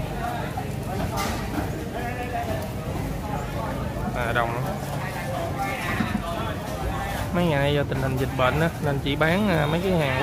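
A crowd of people chatters outdoors on a busy street.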